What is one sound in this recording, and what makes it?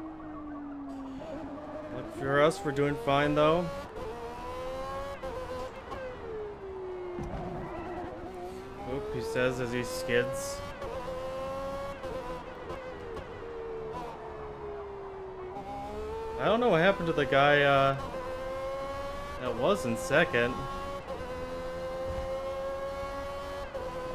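A racing car engine roars, its pitch rising and falling as it speeds up and slows for corners.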